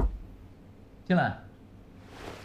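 A young man speaks softly and briefly nearby.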